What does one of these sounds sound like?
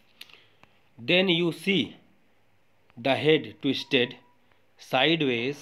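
A young man reads aloud into a close microphone, in short phrases.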